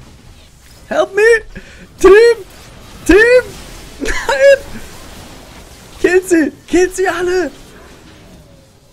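A young man laughs loudly and excitedly close to a microphone.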